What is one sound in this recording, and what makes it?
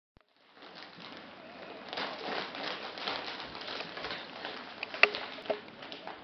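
A plastic mailing bag crinkles and rustles as hands handle it.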